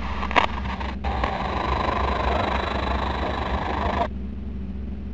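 A radio hisses with static, then suddenly cuts off.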